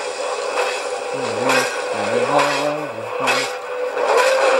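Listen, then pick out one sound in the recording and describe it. A dragon roars through a small television speaker.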